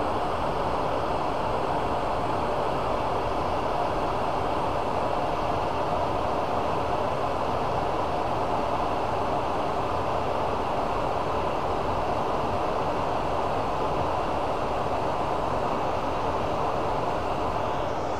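A file rasps against a spinning metal shaft.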